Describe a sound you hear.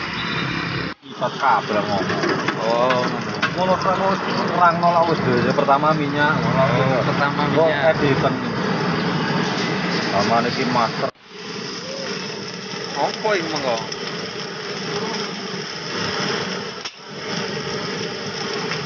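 Hot oil sizzles in a wok.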